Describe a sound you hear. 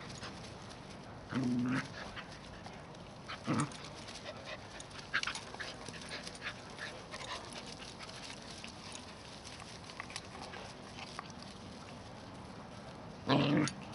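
Dogs scuffle and patter through grass.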